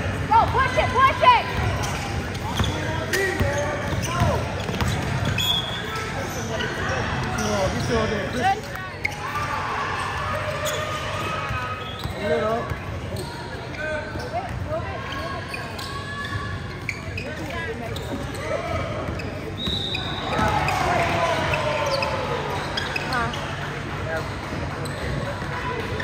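A crowd of young people shouts and chatters in a large echoing gym.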